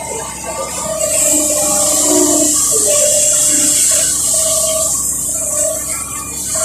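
Hydraulics hiss loudly as an excavator arm swings and digs.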